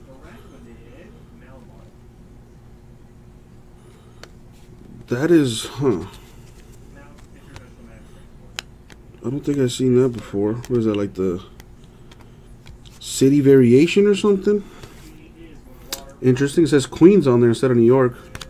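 Trading cards slide and rustle against each other in hands.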